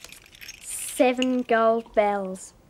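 A young woman sings a few short, steady notes.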